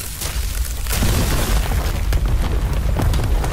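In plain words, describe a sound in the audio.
Rocks crumble and clatter down.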